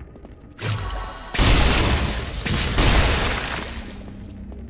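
Fiery spells whoosh and crackle in a game.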